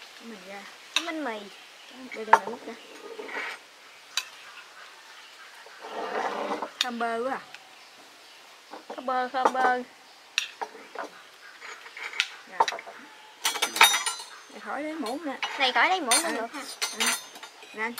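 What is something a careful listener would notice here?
Spoons clink against bowls.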